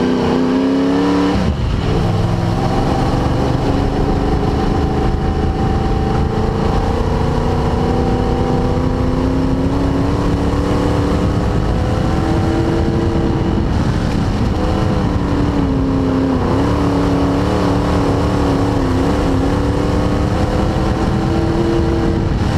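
A race car engine roars loudly from inside the cabin, its pitch rising and falling as it shifts gears.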